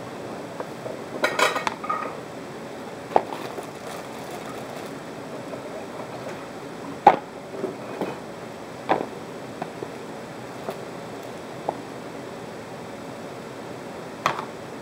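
A plastic bag of baby carrots crinkles as it is handled.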